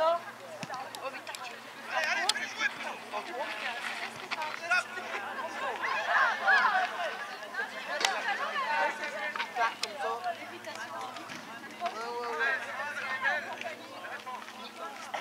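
Boys shout and call out to each other across an open field.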